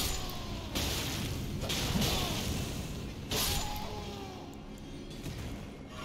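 Weapons clash and strike in a fierce fight.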